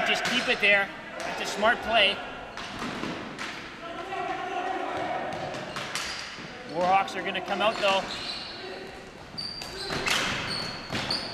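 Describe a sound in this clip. Hockey sticks clack against a ball and the floor.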